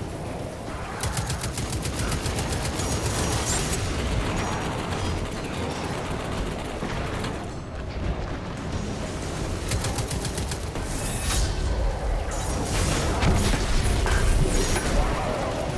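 Rapid gunfire crackles in bursts.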